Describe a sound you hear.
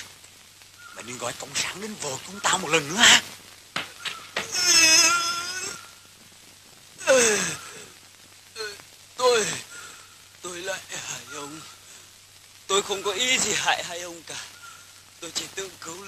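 Men shout angrily close by.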